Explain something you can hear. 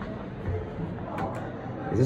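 A finger clicks an elevator button.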